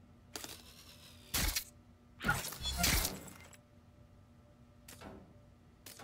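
A small robot's metal legs skitter and click.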